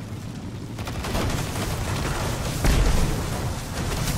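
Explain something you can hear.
An electric crackle zaps loudly.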